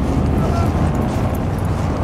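A car drives past on the street.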